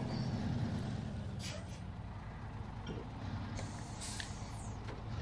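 A heavy truck engine rumbles low and steady.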